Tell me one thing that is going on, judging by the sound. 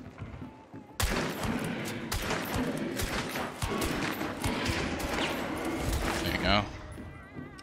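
A handgun fires several loud shots.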